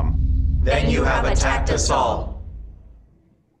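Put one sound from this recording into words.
A woman speaks solemnly through a microphone.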